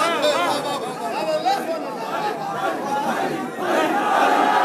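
A young man speaks with passion through a loudspeaker in a large echoing hall.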